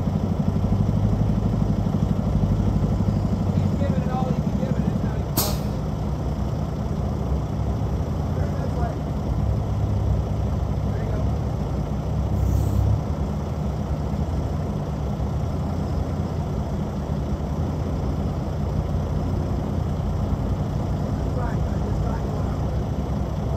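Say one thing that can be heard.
A heavy diesel engine idles nearby with a low, steady rumble.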